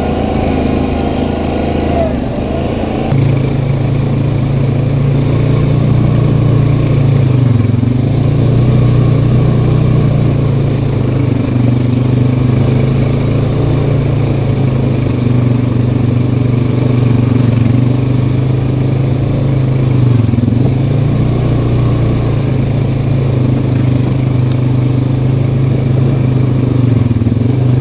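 Tyres roll and crunch over a dirt trail.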